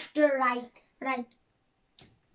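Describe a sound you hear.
A young boy speaks up close, loudly and with animation.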